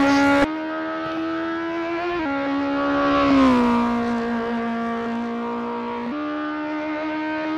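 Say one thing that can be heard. A racing car engine hums steadily, shifting pitch as it changes gear.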